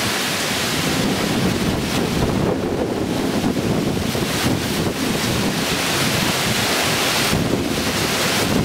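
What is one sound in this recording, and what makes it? Cyclone-force wind roars and gusts outdoors.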